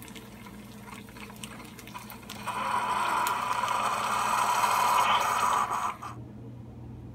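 A coffee maker hisses and gurgles as it brews into a mug.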